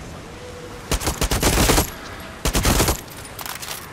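A rifle fires several loud shots in quick bursts.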